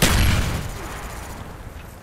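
An explosion booms and rumbles close by.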